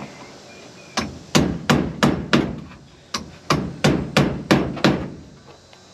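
A man hammers on wood in a quick series of blows.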